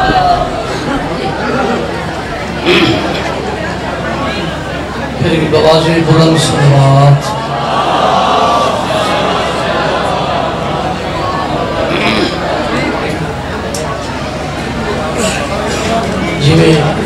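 A man speaks with passion into a microphone, heard through loudspeakers in an echoing space.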